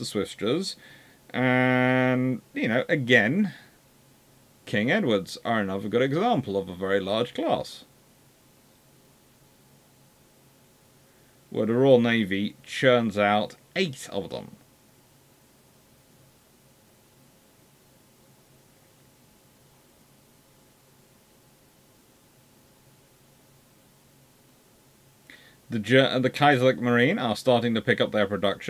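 A man speaks close to a microphone, calmly and with pauses.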